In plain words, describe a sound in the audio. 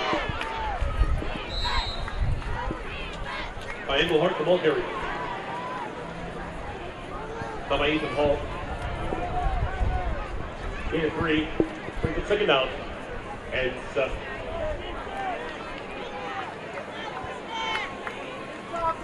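A crowd on the sideline shouts and cheers outdoors.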